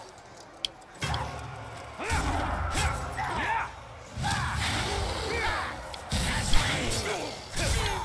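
Blades clash and thud in a close fight.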